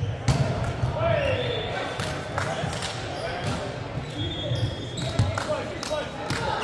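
Shoes squeak sharply on a hard court.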